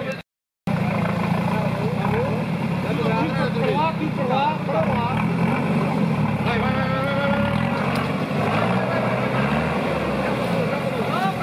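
An engine revs hard and labours close by.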